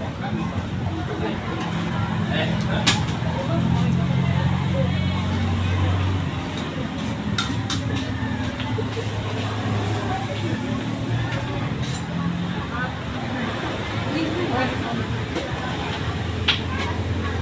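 Spoons scrape and tap against coconut shells.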